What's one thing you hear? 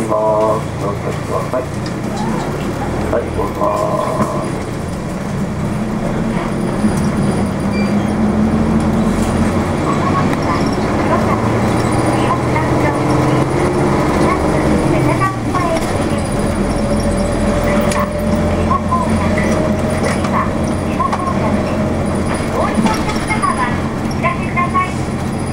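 A vehicle's engine hums steadily as it drives along.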